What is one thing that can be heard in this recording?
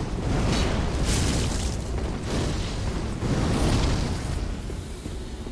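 Fireballs burst and roar.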